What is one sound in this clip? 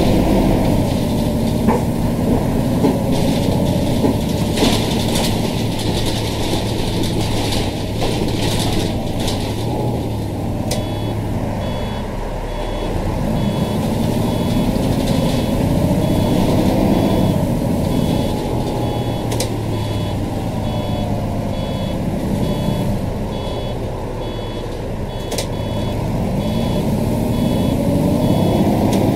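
A bus engine hums steadily, rising and falling in pitch as the bus speeds up and slows down.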